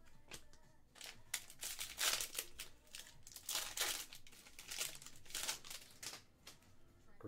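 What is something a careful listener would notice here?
A plastic wrapper crinkles and rustles as it is torn open.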